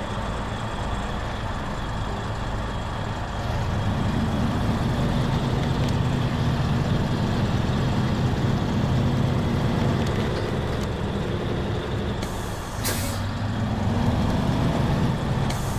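A heavy truck engine rumbles steadily, growing louder as it revs.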